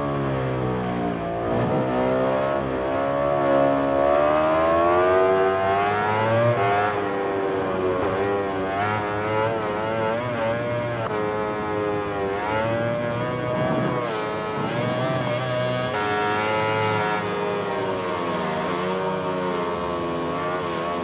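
A motorcycle engine revs high and rises and falls in pitch through gear changes.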